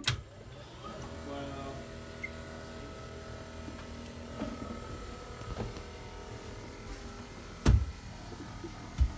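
A stair lift motor hums steadily.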